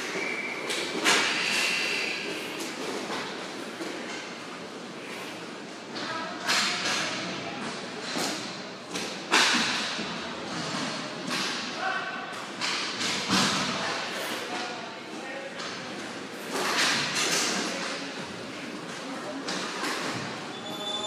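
Hockey sticks clack against a ball and the floor.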